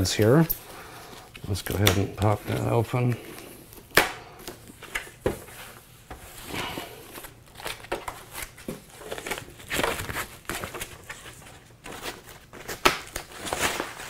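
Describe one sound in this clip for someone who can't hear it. Plastic foam wrapping rustles and crinkles as hands pull it off.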